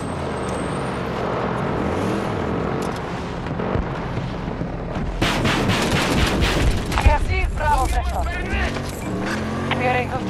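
An engine rumbles as a vehicle drives over rough ground.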